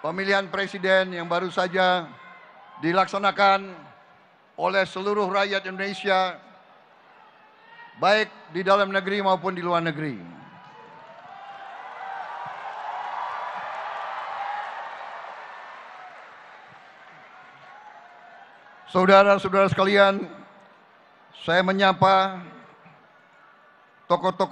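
An older man speaks forcefully into a microphone over loudspeakers in a large hall.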